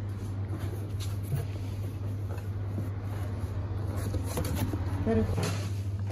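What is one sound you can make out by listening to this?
Cardboard flaps rustle as a box is closed.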